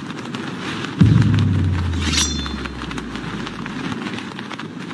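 A deep video game sound effect booms and rumbles away.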